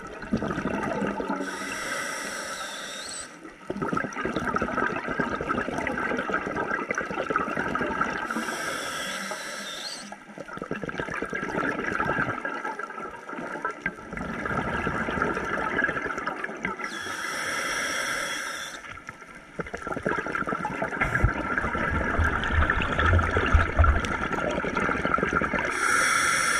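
Bubbles gurgle and rush loudly as a diver breathes out underwater.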